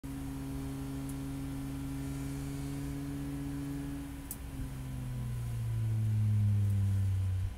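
A car engine drones loudly from inside the cabin, dropping briefly after a gear change and then rising again as the car speeds up.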